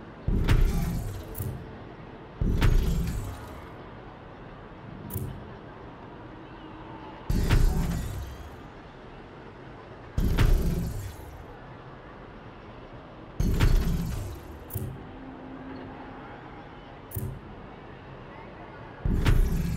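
Heavy thuds sound again and again as buildings drop into place, each followed by a short low rumble.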